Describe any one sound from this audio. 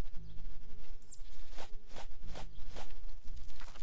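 A hoe chops into soil with dull thuds.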